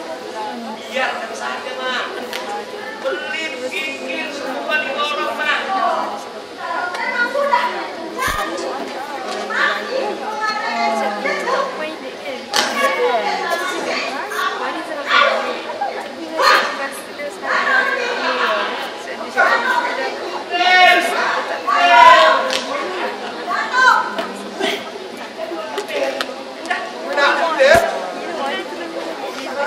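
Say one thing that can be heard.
A man raps energetically into a microphone, heard through loudspeakers in a large hall.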